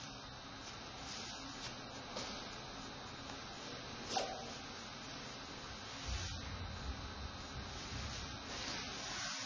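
Cloth rustles softly as a belt is tied.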